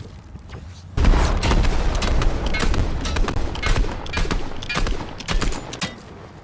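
Rapid gunshots crack from a game.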